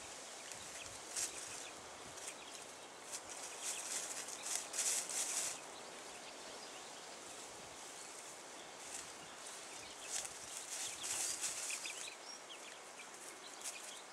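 Chickens scratch and peck in dry grass, rustling close by.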